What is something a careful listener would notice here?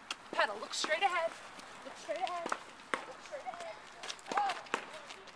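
A woman speaks encouragingly close by.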